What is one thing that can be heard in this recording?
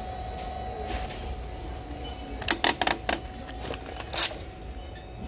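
A paper receipt is torn off a printer with a short rip.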